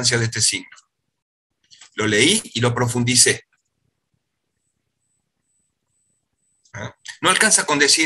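A man explains calmly, heard through an online call.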